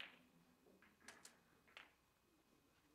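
Snooker balls clack against each other.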